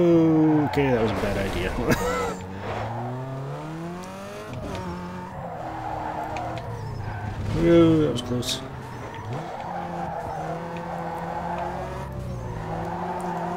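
Tyres screech as a car drifts around corners.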